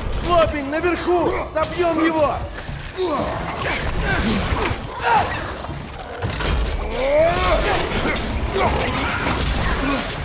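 Creatures growl and shriek.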